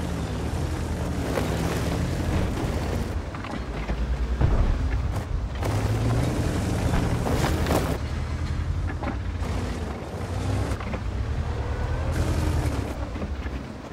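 Tree branches rustle and crack as a tank pushes through them.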